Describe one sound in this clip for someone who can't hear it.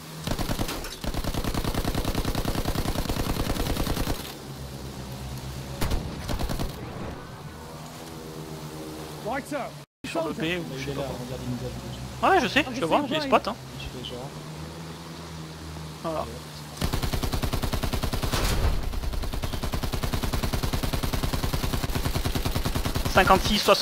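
A machine gun fires in long rapid bursts.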